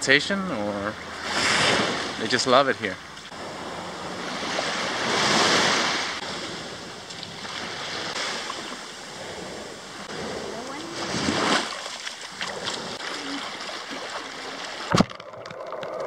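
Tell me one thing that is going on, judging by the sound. Small waves wash onto a beach in swells.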